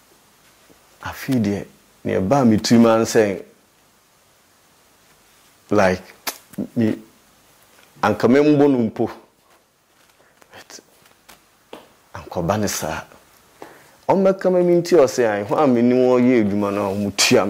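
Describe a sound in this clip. A man speaks calmly and clearly into a close microphone, in short bursts with pauses.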